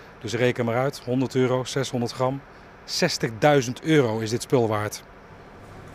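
A middle-aged man speaks calmly into a handheld microphone, close by.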